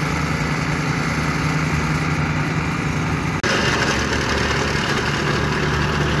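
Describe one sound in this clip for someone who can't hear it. A plate compactor engine drones steadily and rattles nearby.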